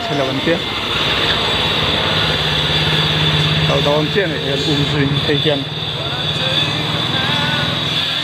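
Motorbike engines idle and rev nearby.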